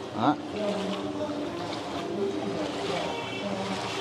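Feet wade and splash through shallow floodwater.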